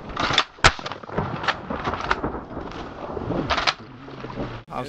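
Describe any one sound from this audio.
Shotguns fire several loud blasts close by.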